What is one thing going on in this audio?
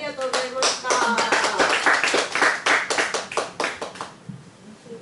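A young girl sings into a microphone.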